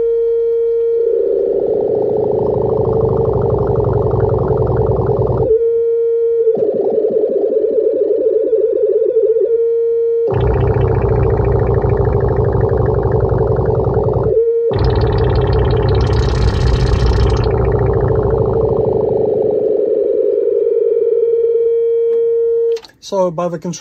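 A synthesizer's sound swells into a rich buzzing texture that shifts and cuts out as knobs are turned.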